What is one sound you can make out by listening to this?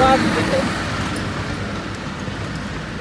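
A minibus drives past close by.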